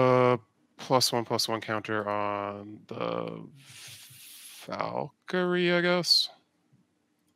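A man speaks with animation through a microphone, as if on an online call.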